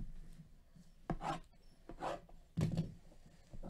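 Hands handle a plastic-wrapped box, and the wrapping crinkles.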